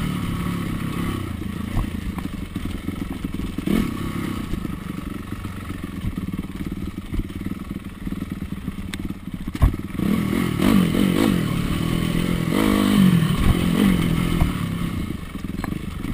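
A dirt bike engine putters and revs up and down close by.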